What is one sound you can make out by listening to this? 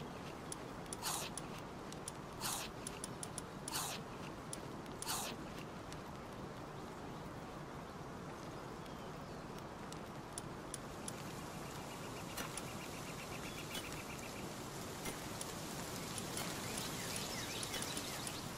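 Soft game menu clicks chime now and then.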